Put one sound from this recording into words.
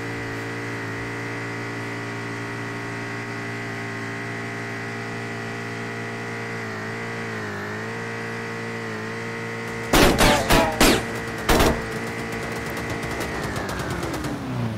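A car engine hums steadily, dipping briefly in pitch and winding down at the end.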